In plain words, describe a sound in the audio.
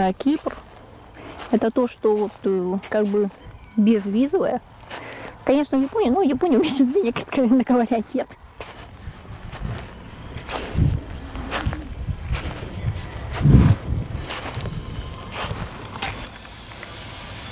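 Footsteps crunch on loose pebbles.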